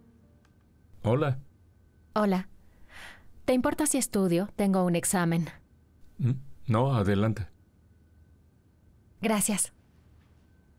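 A young woman speaks calmly and cheerfully nearby.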